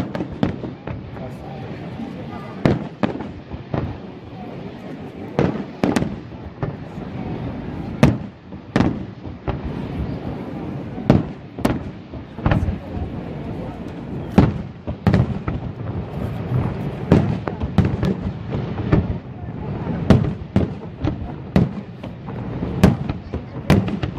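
Fireworks boom and crackle loudly overhead, one burst after another.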